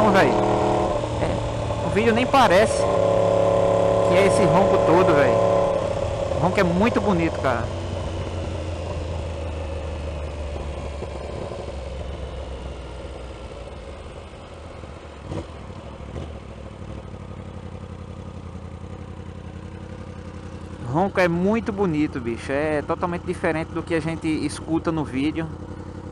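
A motorcycle engine hums steadily up close, growing quieter as the bike slows.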